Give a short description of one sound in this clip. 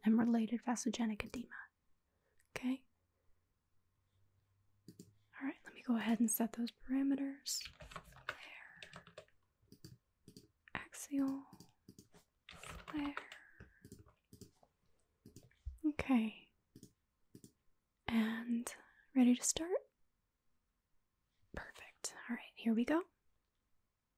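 A young woman speaks calmly into a close microphone, with pauses.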